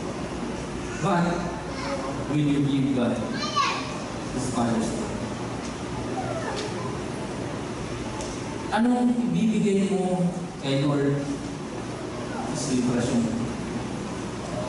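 A man speaks with animation through a microphone in a large echoing hall, pausing often.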